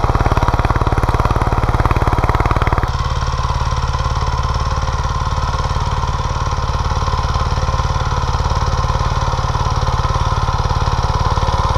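A small tractor engine chugs steadily nearby.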